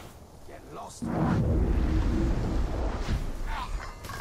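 A low magical blast whooshes and rumbles loudly.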